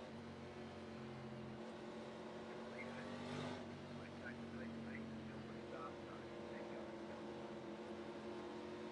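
A race car engine drones steadily at low speed.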